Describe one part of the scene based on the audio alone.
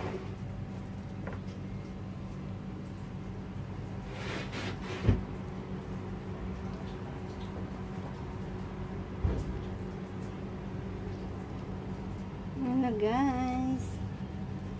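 Fish sizzle gently in hot oil in a frying pan.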